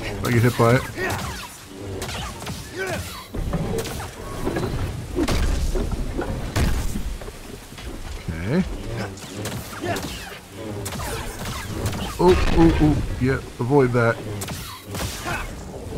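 Blades clash with sharp metallic clangs.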